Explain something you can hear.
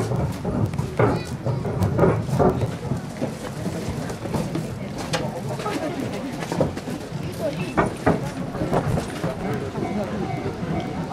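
A crowd of people chatter and walk nearby outdoors.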